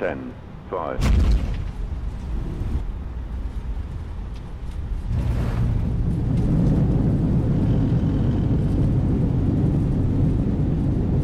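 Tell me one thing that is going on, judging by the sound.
Tyres rumble loudly along a runway.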